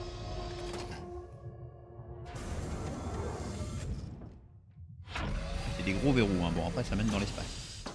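A heavy metal door unlocks and slides open with a mechanical rumble.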